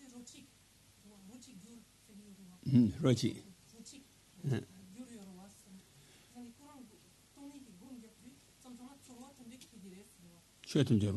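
An elderly man speaks calmly and slowly into a microphone.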